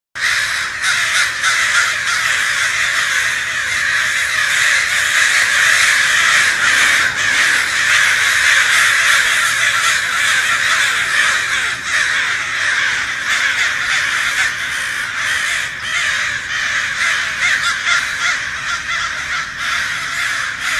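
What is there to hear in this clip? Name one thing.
A large flock of birds chirps and squawks loudly in an echoing hall.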